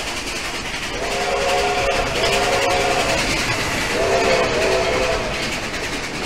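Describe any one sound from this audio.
A steam train whistle blows twice.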